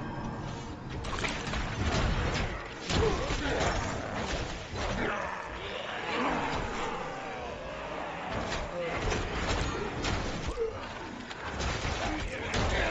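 Magic spells burst with loud whooshes and impacts.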